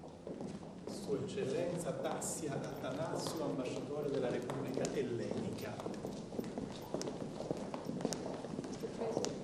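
A crowd of men and women murmurs in the background.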